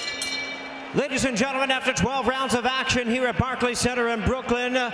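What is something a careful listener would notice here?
An elderly man announces loudly into a microphone over loudspeakers.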